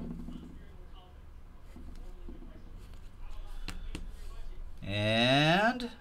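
Plastic card sleeves rustle and click in hands.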